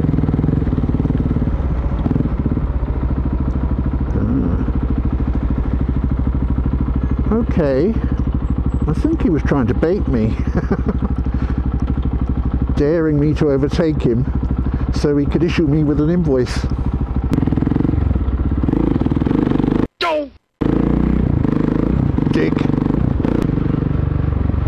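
A motorcycle engine hums steadily up close, rising and falling with the throttle.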